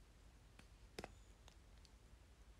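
Fingers knock against a phone close to its microphone.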